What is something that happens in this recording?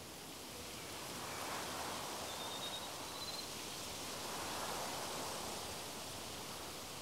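Leaves rustle in a gentle breeze.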